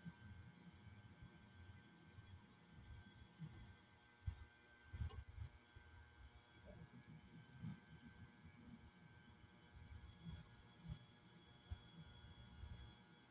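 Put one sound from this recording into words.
A fingertip taps and drags lightly on a phone's touchscreen.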